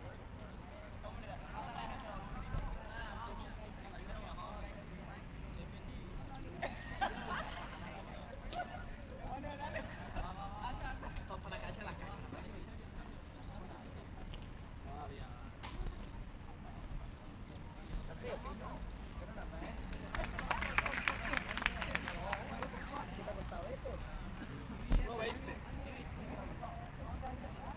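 Young men chatter and call out to each other outdoors.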